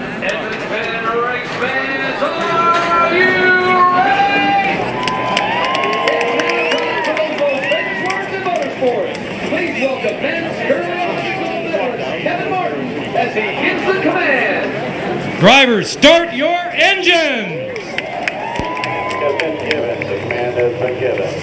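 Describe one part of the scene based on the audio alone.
A man sings loudly into a microphone, heard over loudspeakers outdoors.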